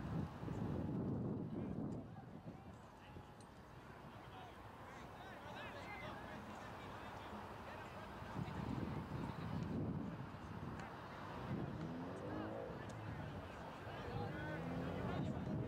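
Distant players and spectators call out across an open field.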